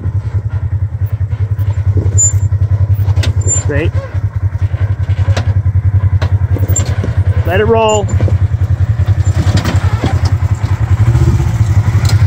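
An off-road vehicle's engine idles with a low, steady throb.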